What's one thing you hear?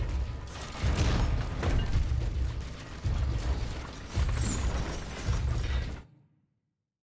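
Fires roar and crackle nearby.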